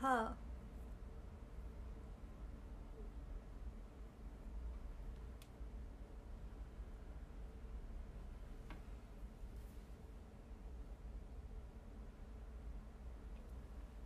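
A comb brushes softly through hair.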